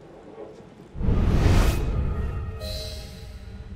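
A window bursts open with a loud crash.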